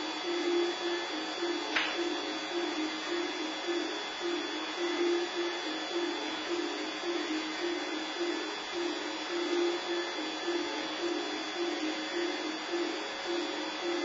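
A flute plays a melody on stage.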